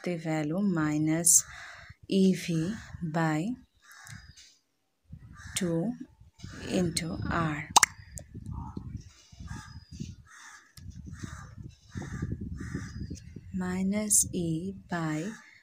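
A young woman speaks calmly, as if explaining.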